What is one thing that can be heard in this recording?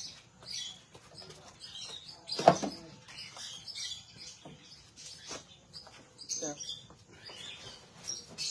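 A middle-aged woman talks close by in a casual manner.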